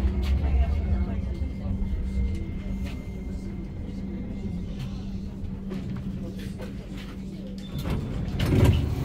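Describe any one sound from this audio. A tram's motor hums steadily inside the carriage.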